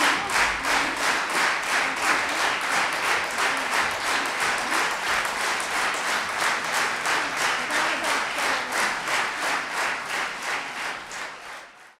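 An audience claps in rhythmic applause in a large hall and fades away at the end.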